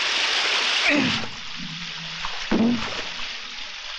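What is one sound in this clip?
A man cries out in strain.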